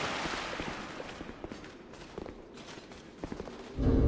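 Footsteps thud on stone steps.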